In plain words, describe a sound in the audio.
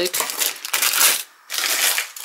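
Cardboard scrapes as a hand moves against a box.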